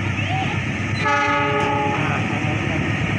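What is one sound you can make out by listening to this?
A train horn sounds briefly in the distance.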